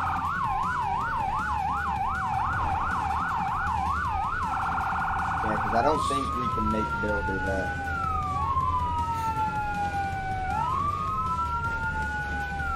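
Sirens wail, switching between fast warbles and slow rising and falling wails.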